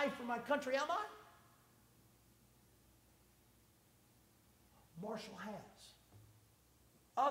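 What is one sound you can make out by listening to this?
A man speaks with animation through a microphone in an echoing hall, pausing between phrases.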